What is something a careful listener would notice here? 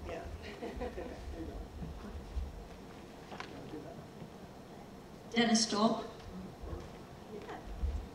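An elderly woman speaks calmly through a microphone in a large room.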